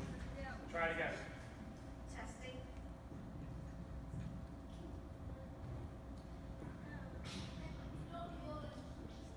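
Children in an audience murmur and chatter quietly.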